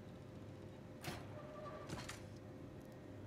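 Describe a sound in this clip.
A metal shutter slides open with a mechanical clunk.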